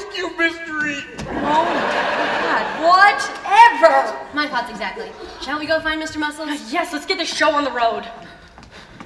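A young woman speaks loudly and with animation in a large hall.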